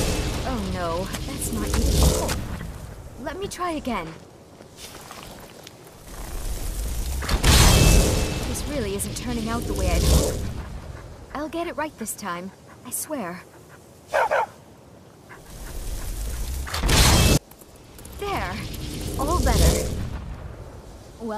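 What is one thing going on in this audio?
A magical portal roars and crackles.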